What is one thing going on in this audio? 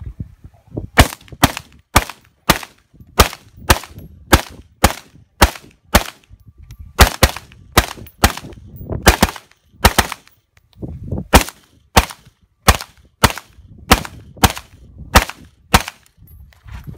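A rifle fires shot after shot at a steady pace outdoors.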